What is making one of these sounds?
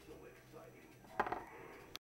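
A small plastic toy figure clatters onto a hard surface.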